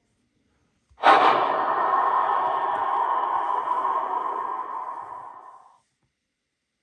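A short swelling intro sound plays through a tablet speaker and fades out.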